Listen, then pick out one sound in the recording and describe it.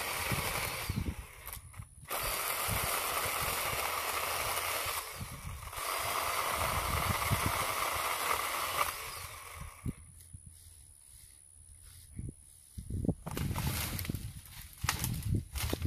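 Branches and leaves rustle as a man moves through thick brush.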